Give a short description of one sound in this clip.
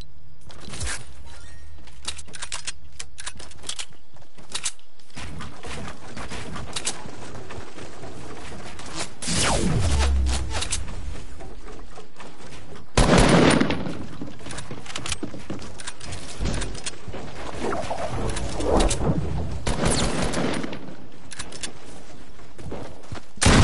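Wooden walls and ramps snap into place with quick clattering knocks.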